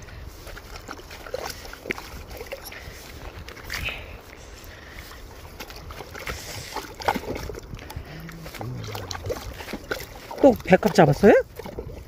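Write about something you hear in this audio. Shallow water splashes and trickles as hands move through it.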